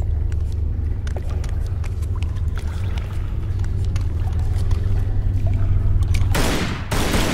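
Footsteps tap on a hard stone floor in an echoing space.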